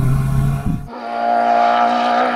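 A third car engine whines in the distance.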